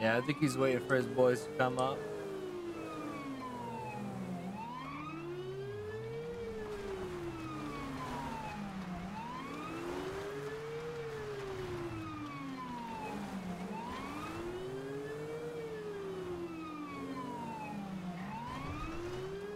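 A car engine roars at speed.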